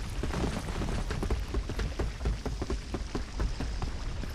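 Heavy boots thud quickly on wooden planks.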